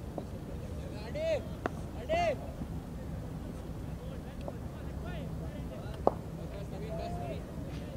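A cricket bat strikes a ball with a sharp knock in the distance.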